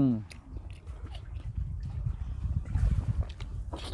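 A man bites and chews juicy watermelon.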